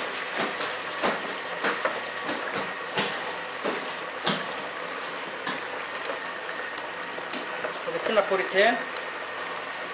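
A wooden spatula stirs and scrapes in a metal pan.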